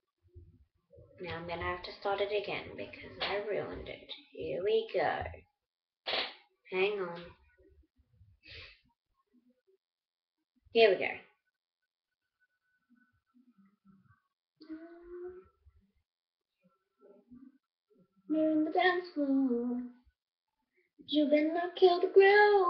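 A young woman talks casually and close to the microphone, with pauses.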